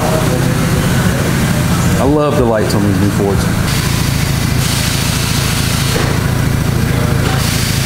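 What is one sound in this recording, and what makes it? A pickup truck engine idles with a steady low rumble.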